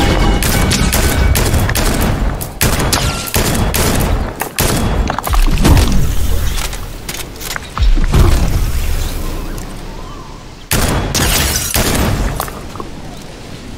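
A sniper rifle fires sharp, loud shots several times.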